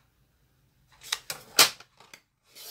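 A paper trimmer blade slides and cuts through paper.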